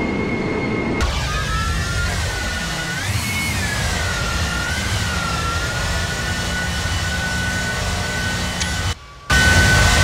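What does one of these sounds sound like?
A jet airliner roars loudly as it flies past.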